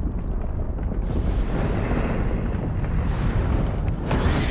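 Sparks crackle and fizz in a sudden burst.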